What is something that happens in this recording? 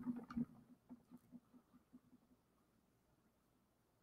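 A pencil scratches lightly on cardboard.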